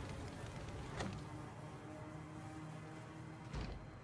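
A wooden door opens.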